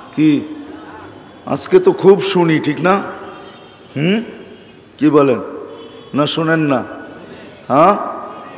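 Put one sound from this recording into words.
An elderly man speaks with animation into a microphone, in bursts, with an echo in a large hall.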